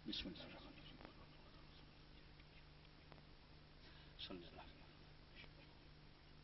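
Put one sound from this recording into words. An elderly man speaks in bursts through a microphone and loudspeakers.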